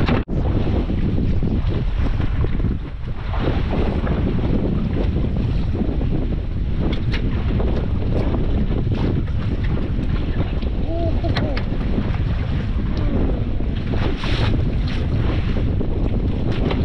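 Waves slap against a small boat's hull.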